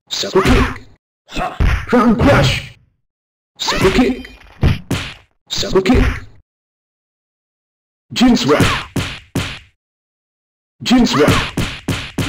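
Punches and sword strikes land with short thuds and clangs in quick bursts.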